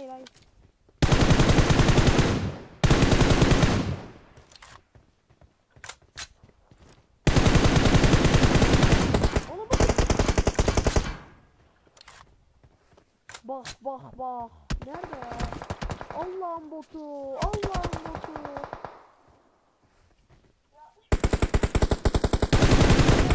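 A rifle fires rapid bursts of automatic gunfire at close range.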